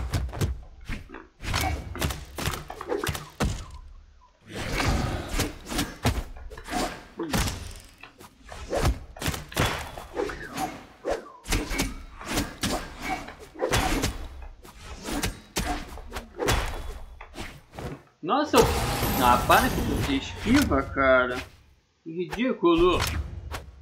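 Fast whooshes sweep past as fighters leap and dash.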